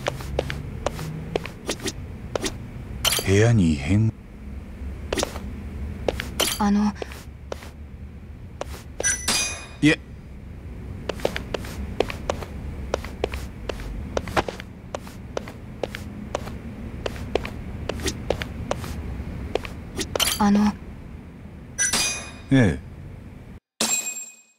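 Footsteps tap steadily on a hard floor.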